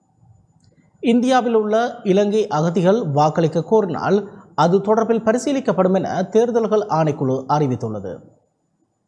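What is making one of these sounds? A man speaks clearly and steadily into a close microphone.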